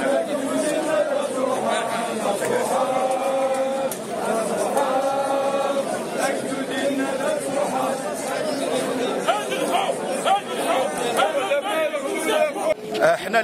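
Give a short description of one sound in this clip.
A large crowd chants together loudly outdoors.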